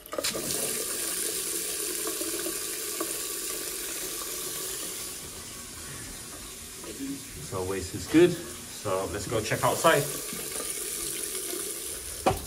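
Water runs steadily from a tap into a basin.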